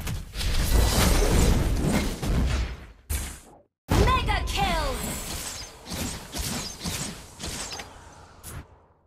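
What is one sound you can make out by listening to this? Fighting sound effects blast and clash in quick bursts.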